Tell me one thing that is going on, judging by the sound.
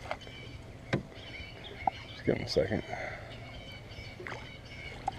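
A fishing reel clicks and whirs up close.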